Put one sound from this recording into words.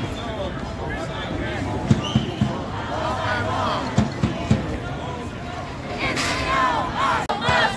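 A crowd of people outdoors chants and shouts together.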